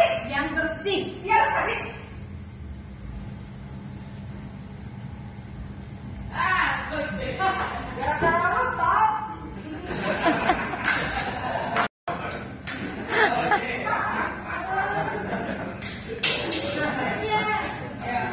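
An elderly woman talks loudly and scolds, nearby.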